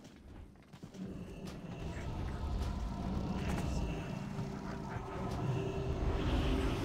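Magic spells crackle and whoosh in a battle.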